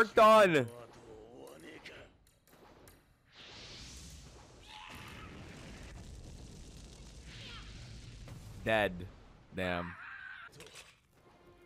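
A young man talks with animation into a microphone.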